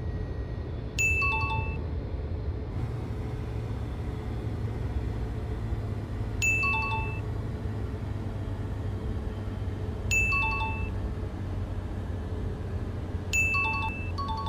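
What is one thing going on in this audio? A short bright electronic chime rings out several times.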